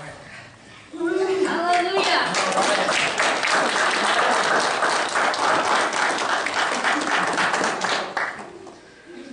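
A young woman cries out emotionally nearby.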